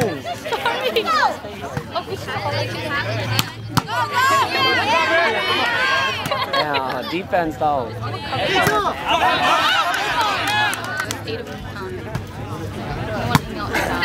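A crowd of young men and women shout and cheer nearby outdoors.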